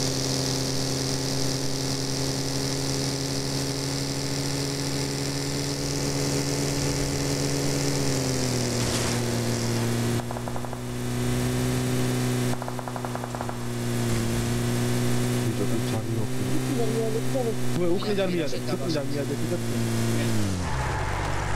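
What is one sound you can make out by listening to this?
A vehicle engine drones steadily, its pitch dropping slightly partway through.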